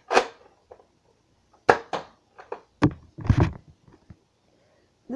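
A toy blaster clicks and snaps as it is handled close by.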